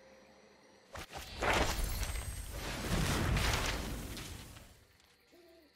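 A game's magical spell effect whooshes and swells loudly, then fades.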